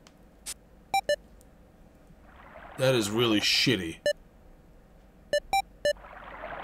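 Short electronic beeps sound as menu choices are made.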